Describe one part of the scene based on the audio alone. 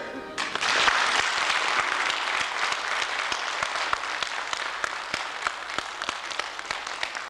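An audience applauds in a hall.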